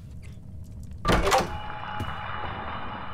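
A door bangs shut loudly, followed by a ringing echo.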